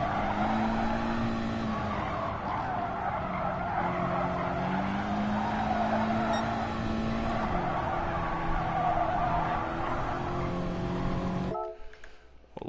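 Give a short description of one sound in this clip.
A racing car engine roars and shifts through the gears.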